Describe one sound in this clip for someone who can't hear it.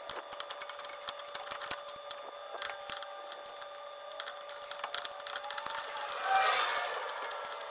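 A ratchet wrench clicks in short bursts.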